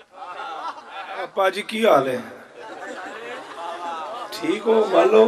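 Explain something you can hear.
A man speaks passionately into a microphone, his voice ringing through loudspeakers.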